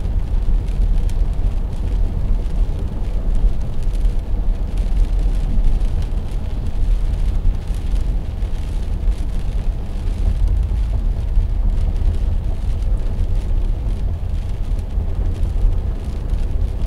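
Windshield wipers sweep across the glass.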